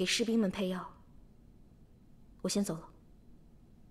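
A young woman speaks softly and briefly.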